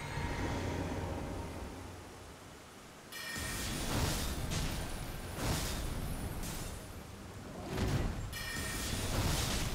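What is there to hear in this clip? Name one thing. Swords clash and magic bursts ring out in a fight.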